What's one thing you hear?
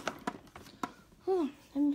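Plastic toys click and knock as they are handled.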